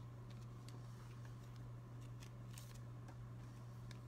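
A trading card slides softly across a wooden table.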